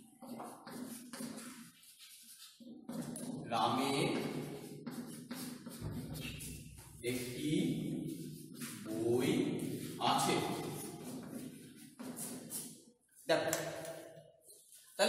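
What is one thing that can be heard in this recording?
A young man speaks calmly and clearly nearby, as if teaching.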